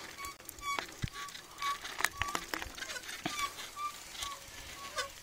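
A bicycle rattles and clatters over a bumpy dirt track.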